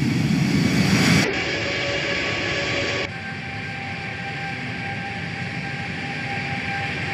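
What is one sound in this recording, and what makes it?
Jet engines roar steadily with a high whine.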